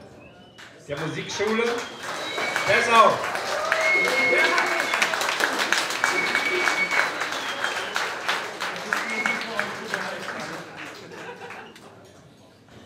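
A big band of saxophones, trumpets and trombones plays a loud jazz phrase, then fades.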